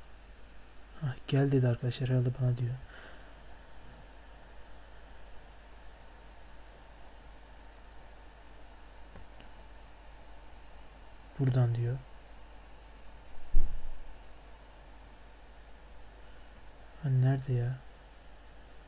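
A young man speaks briefly and calmly into a close headset microphone.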